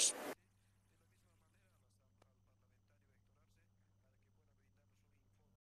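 A man speaks calmly into microphones, heard faintly.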